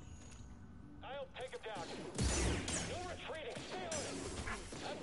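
Blaster shots zap in quick bursts.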